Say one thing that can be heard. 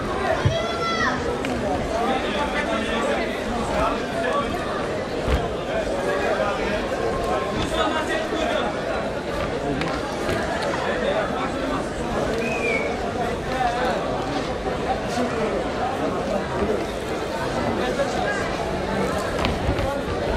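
A crowd cheers and shouts throughout.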